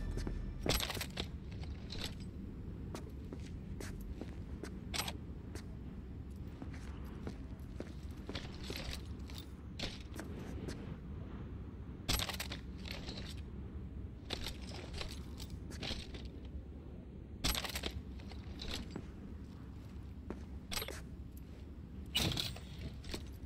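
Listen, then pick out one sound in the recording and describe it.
Short clicks sound as items are picked up.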